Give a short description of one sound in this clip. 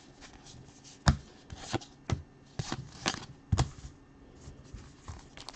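Trading cards slide and tap against each other.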